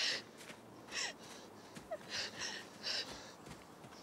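Footsteps run through dry leaves on the ground.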